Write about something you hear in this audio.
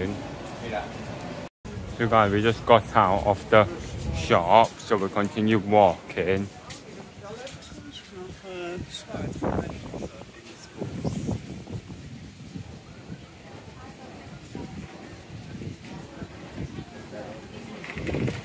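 A crowd of passersby chatters in the background.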